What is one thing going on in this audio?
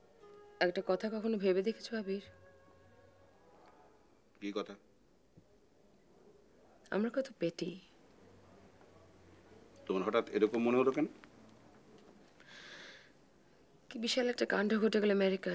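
A woman speaks in a tense, low voice nearby.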